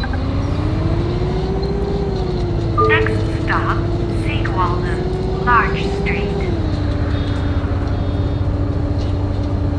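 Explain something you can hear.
A bus engine hums steadily, its pitch rising and falling as it drives.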